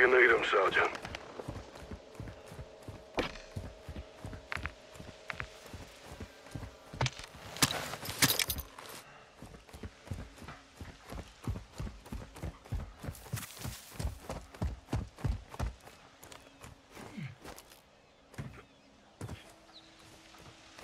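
Footsteps thud quickly and steadily on hard ground.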